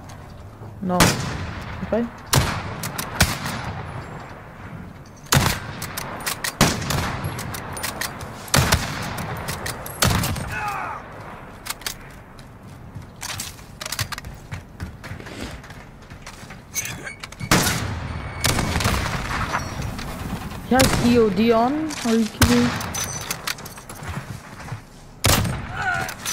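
Loud rifle shots crack one at a time, each with a short echo.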